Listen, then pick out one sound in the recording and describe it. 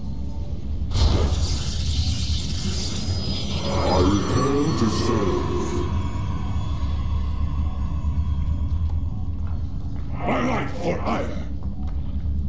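Video game sound effects whoosh and chime in short bursts.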